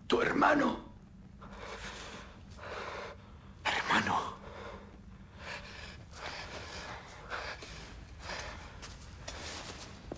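A masked man speaks quietly in a hoarse voice.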